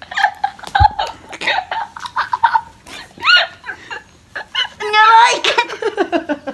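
A young woman squeals and laughs close by.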